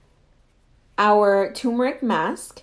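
A young woman speaks calmly and close up.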